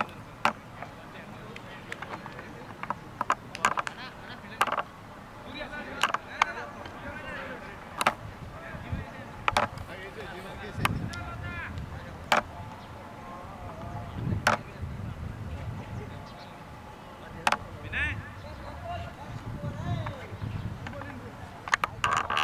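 Men talk and call out to each other at a distance outdoors.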